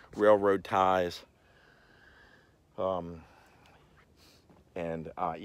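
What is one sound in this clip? An older man talks with animation close to the microphone, outdoors.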